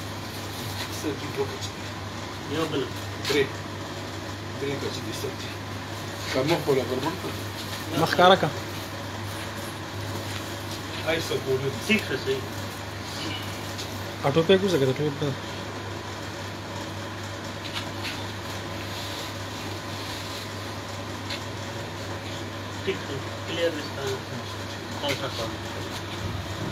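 Men talk nearby in short bursts.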